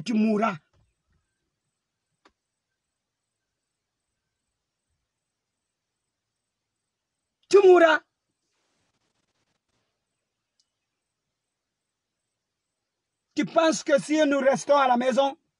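A man speaks close to a phone microphone in short bursts with long pauses.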